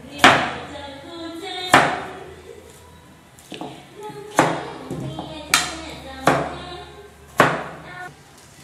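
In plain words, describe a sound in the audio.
A knife chops carrot on a cutting board.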